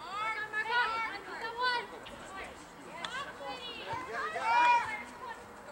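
Young women shout to each other across an open field.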